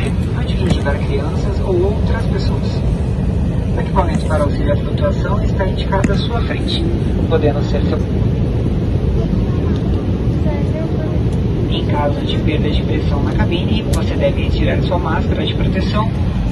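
Aircraft engines roar steadily inside a cabin.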